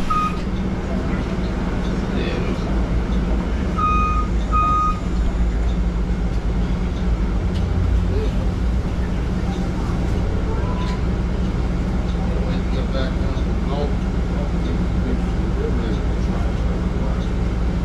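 A bus engine hums steadily at idle.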